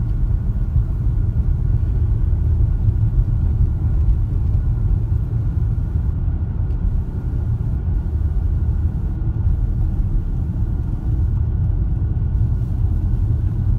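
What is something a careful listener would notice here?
Wind rumbles low against the moving car.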